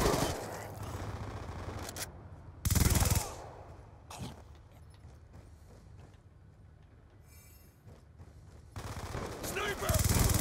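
Rapid gunfire bursts out in loud bursts.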